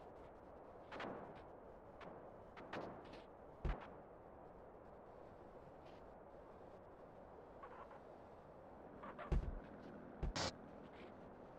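A car's suspension thumps and knocks over bumps.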